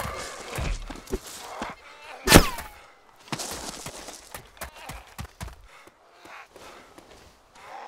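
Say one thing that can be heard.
Footsteps thud quickly over grass and dirt.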